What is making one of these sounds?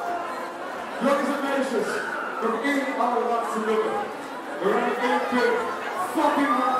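A young man shouts into a microphone through loudspeakers.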